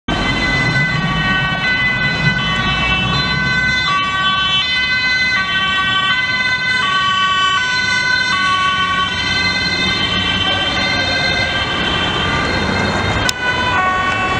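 A two-tone ambulance siren wails as the ambulance passes.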